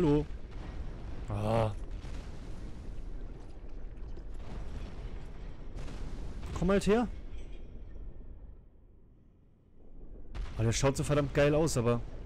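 A sword whooshes as it swings through the air.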